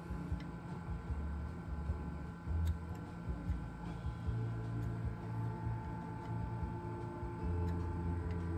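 A screwdriver turns a nut with faint metallic clicks.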